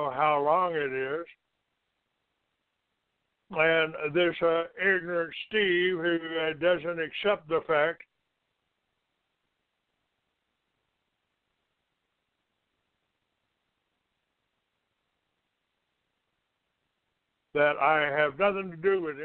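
An older man talks with animation over a phone line, with pauses.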